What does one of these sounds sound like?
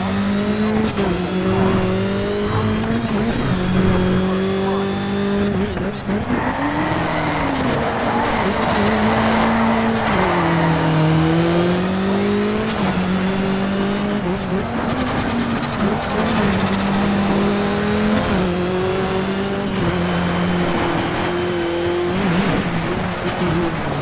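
A racing car engine roars and revs up and down steadily throughout.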